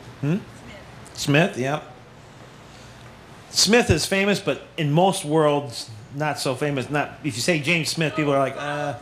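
A middle-aged man speaks calmly through a microphone, in short phrases with pauses.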